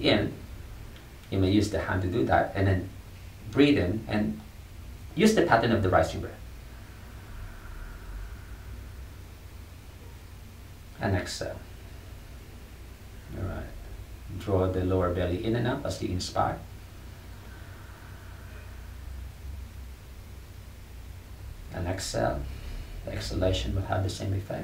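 A man speaks calmly and slowly close by, with pauses.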